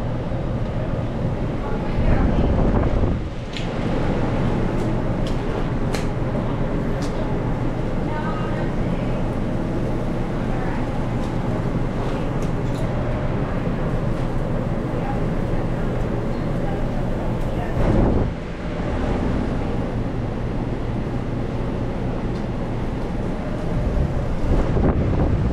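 An exhaust fan hums steadily.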